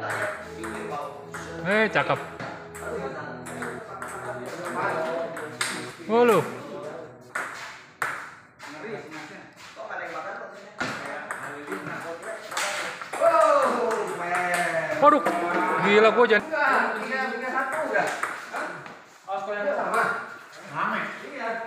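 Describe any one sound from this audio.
Men talk and call out loudly nearby in an echoing hall.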